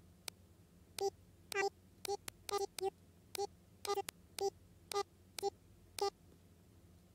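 Soft game key clicks tap out in a quick series.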